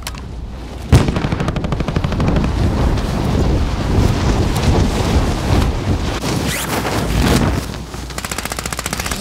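Wind rushes loudly during a fast freefall dive.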